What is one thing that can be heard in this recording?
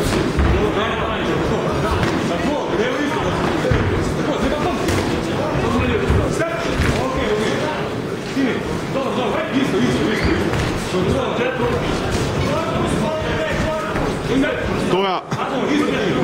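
Gloved punches and kicks thud against bodies.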